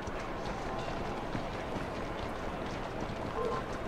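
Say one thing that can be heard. Carriage wheels rumble over stone.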